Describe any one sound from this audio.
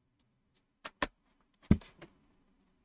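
A wooden game piece clacks onto a board.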